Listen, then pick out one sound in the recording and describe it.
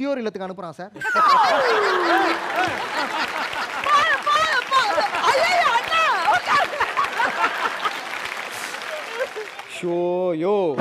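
A crowd of men and women laughs together.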